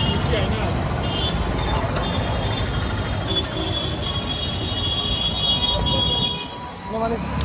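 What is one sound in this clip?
Busy street noise rumbles steadily outdoors.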